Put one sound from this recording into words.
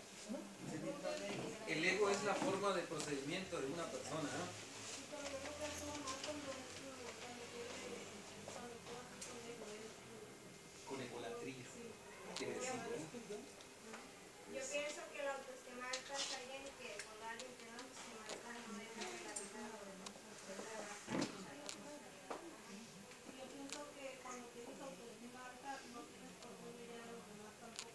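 A man speaks steadily to a group, heard from across the room.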